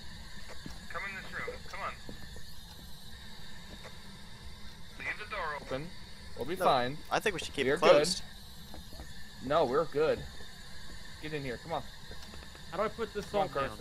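A handheld radio scanner hisses and crackles with static as it sweeps rapidly through stations.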